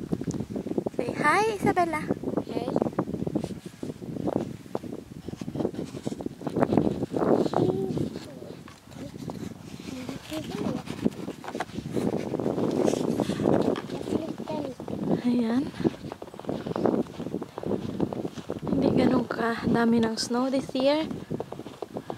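A young girl speaks in a high voice close by.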